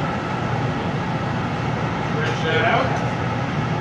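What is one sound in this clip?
A gas torch flame roars steadily.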